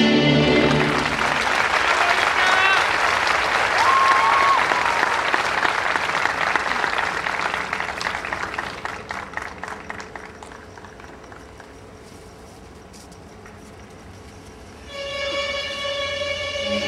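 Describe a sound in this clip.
Dancers' feet patter and shuffle on a wooden stage.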